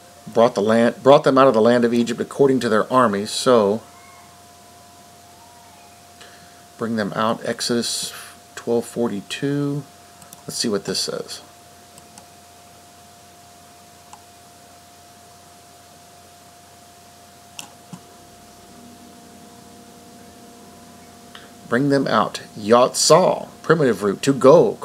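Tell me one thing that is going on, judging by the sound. A man speaks calmly and close to a microphone, in bursts with pauses.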